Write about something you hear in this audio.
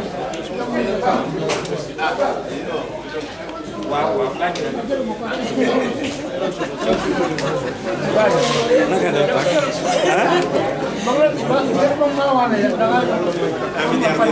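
Several adult men talk at once nearby in a lively crowd.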